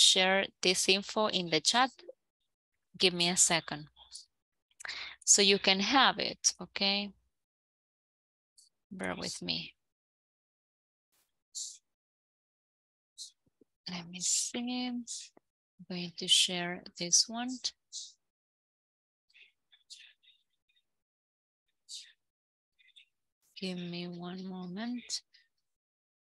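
A woman speaks calmly over an online call, explaining and reading out.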